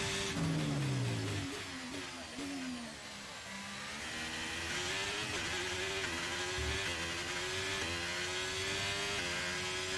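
A racing car engine whines loudly, dropping in pitch as it slows and then rising steadily through the gears.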